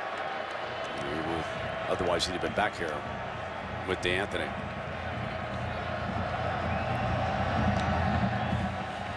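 A large stadium crowd roars steadily, growing louder toward the end.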